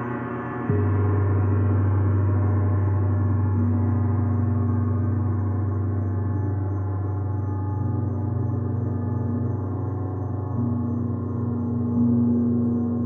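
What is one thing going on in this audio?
A man strikes a gong with a soft mallet.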